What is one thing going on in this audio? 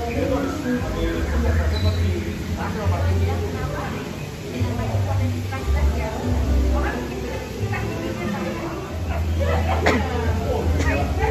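Men and women chat in low voices nearby.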